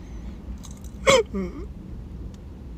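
A man lets out a short, sharp vocal sound close by.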